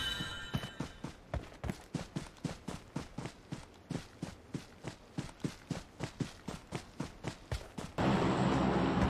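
Footsteps thud quickly in a steady rhythm.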